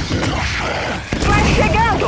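An explosion booms and fire roars.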